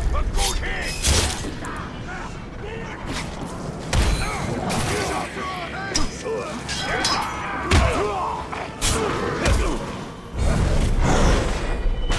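Blades clash and slash with sharp metallic hits.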